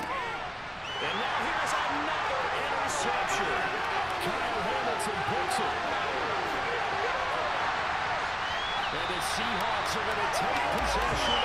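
A stadium crowd roars and cheers loudly.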